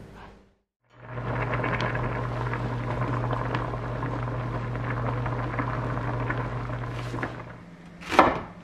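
Oil bubbles and sizzles steadily in a pan.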